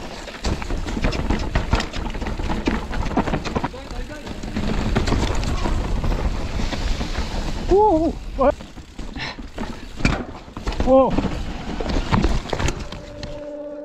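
A mountain bike rattles and clanks over bumps.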